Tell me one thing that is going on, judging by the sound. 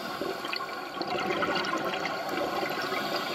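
Scuba divers breathe out, with bubbles gurgling and rushing underwater.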